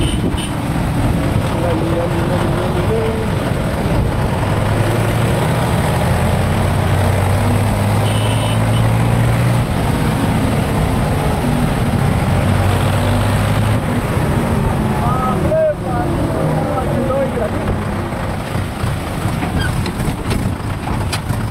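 A tractor engine rumbles and chugs steadily up close.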